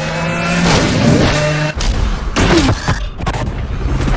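A car smashes through a roadblock with a loud crash.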